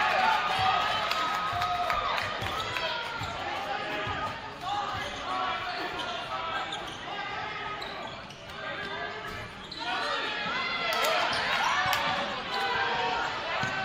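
A basketball bounces as a player dribbles.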